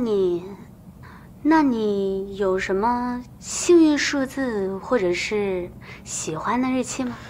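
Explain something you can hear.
A young woman asks questions in a calm, lively voice close by.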